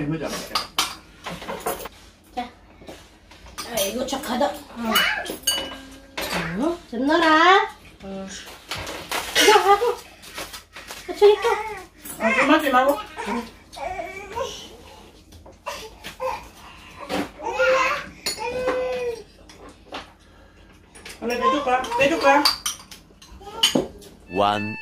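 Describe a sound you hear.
An elderly woman talks and laughs.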